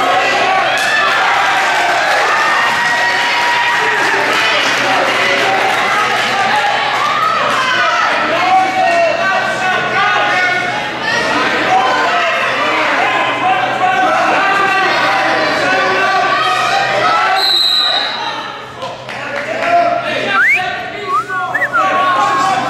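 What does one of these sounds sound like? A crowd of men and women shouts and cheers loudly in a large echoing hall.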